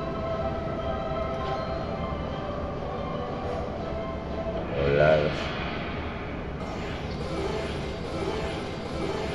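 A slot machine plays bright electronic jingles and chimes.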